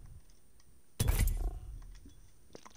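A game menu button gives a sharp click and swoosh.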